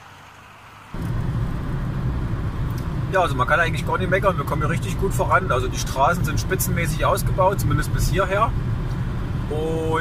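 A car drives along a road, with a steady low rumble of tyres and engine from inside.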